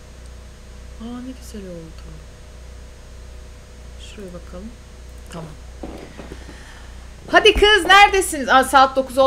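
A young woman speaks close to a microphone, briefly at first and then with animation.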